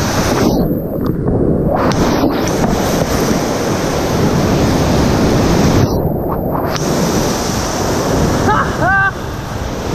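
Whitewater rapids roar loudly and close by.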